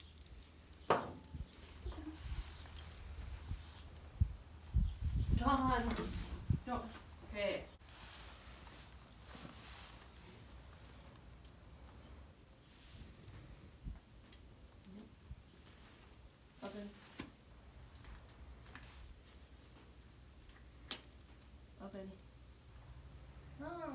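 Buckles and tack jingle softly.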